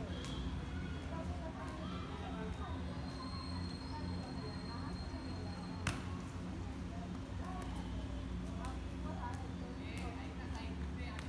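Boys call out to each other outdoors.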